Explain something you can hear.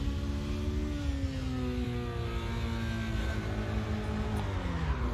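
A racing car engine whines loudly, its pitch dropping and then holding steady.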